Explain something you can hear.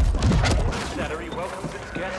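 Gunfire and blasts burst out in quick bursts.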